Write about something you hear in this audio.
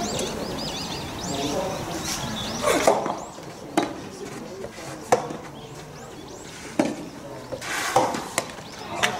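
A tennis ball is struck with a racket in a rally, with sharp pops.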